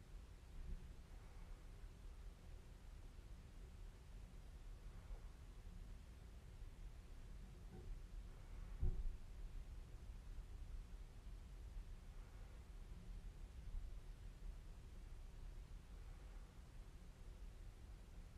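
A young woman breathes softly and slowly close by.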